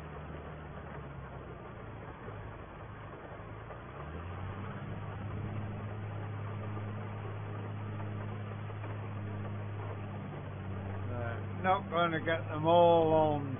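A tractor engine hums steadily and rises in pitch as it speeds up.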